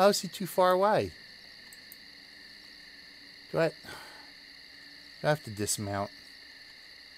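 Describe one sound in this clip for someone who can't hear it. A man speaks briefly and casually into a nearby microphone.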